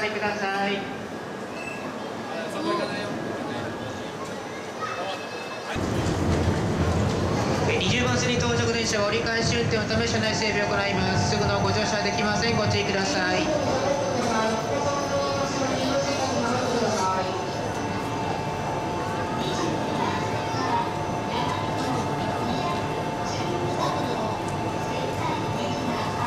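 A high-speed train rolls past on the tracks.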